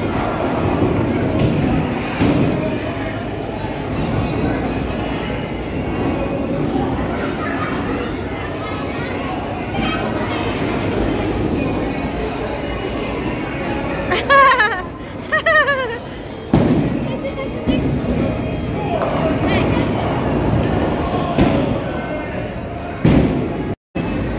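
A crowd of people chatters in a large, noisy hall.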